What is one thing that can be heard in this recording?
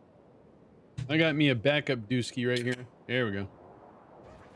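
A man speaks briefly and with animation, close to a microphone.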